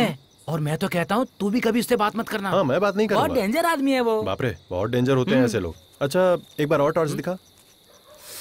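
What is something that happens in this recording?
A man speaks in a low, tense voice up close.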